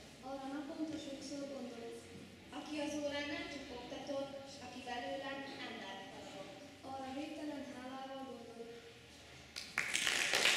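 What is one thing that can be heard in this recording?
A girl reads out calmly into a microphone.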